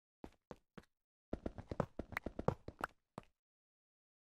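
A pickaxe chips at stone blocks in a video game.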